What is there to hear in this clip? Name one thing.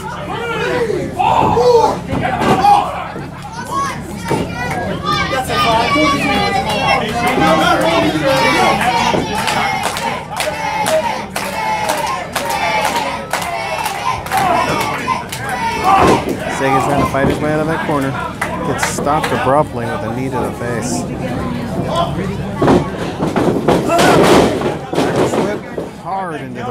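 Bodies thump onto a wrestling ring mat.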